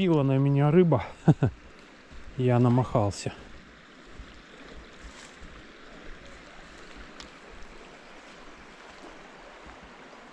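A shallow stream trickles gently nearby.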